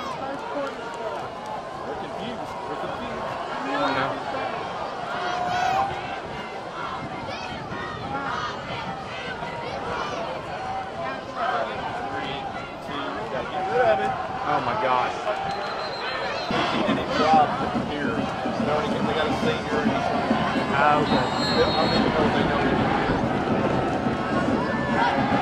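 A large crowd cheers and shouts outdoors, growing louder partway through.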